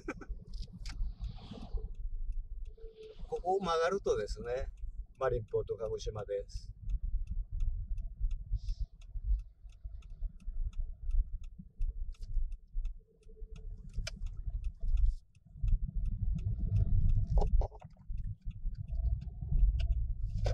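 A car's engine and tyres rumble low and steadily on the road.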